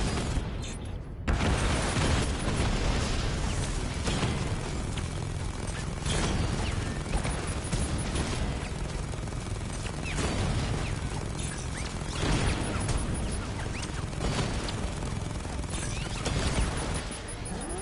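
Explosions burst nearby.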